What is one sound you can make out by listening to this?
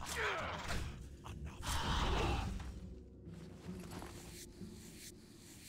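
Blade strikes land with sharp slashing hits.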